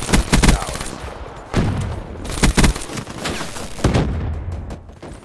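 Gunfire bursts loudly in a video game.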